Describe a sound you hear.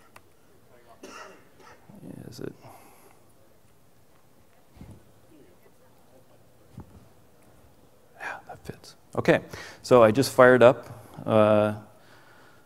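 A man speaks into a microphone in a large hall, pausing between phrases.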